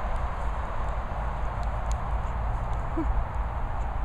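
A dog's paws patter on grass as it runs.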